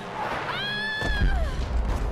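A heavy body slams onto a metal grate with a loud crash.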